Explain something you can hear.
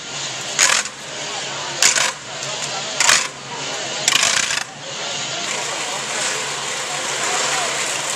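A crowd murmurs and chatters outdoors along a street.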